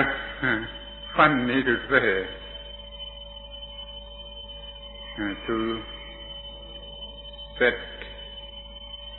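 An elderly man speaks calmly in short phrases, heard through an old, thin-sounding recording.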